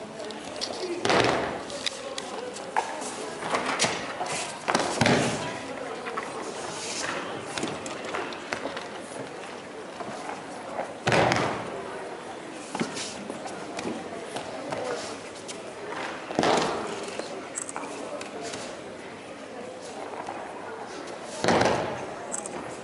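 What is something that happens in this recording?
Bodies thump onto a padded mat in a large echoing hall.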